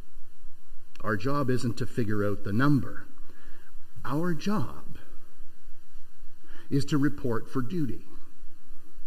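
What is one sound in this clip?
An elderly man preaches with animation through a microphone, pausing between phrases.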